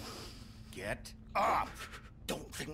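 A man shouts angrily at close range.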